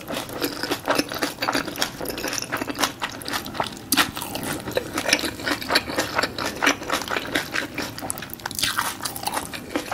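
A woman chews food close to a microphone with wet, crunchy mouth sounds.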